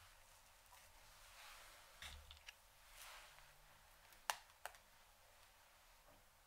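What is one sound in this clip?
Hands rustle softly through hair.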